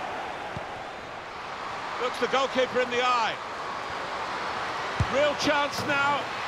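A stadium crowd murmurs and roars in the background.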